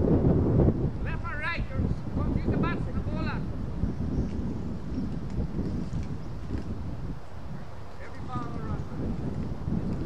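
A man calls out across an open field, heard from a distance.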